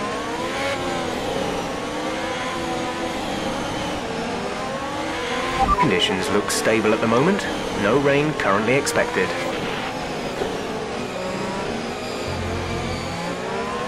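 A racing car engine hums and whines steadily, its pitch rising and falling with the speed.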